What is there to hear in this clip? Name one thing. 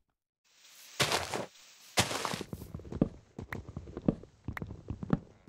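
Leaves and wood crunch as blocks are broken.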